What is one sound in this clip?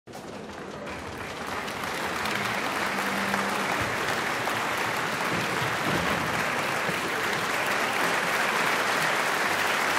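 A large audience applauds in an echoing hall, the clapping swelling louder.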